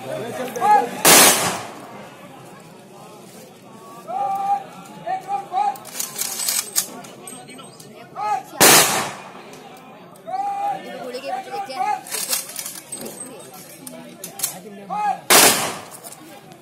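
Rifles fire together in a loud volley outdoors.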